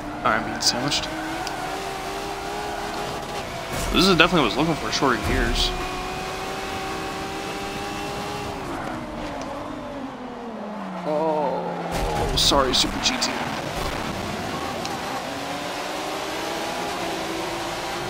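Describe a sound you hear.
A race car engine roars and shifts through its gears.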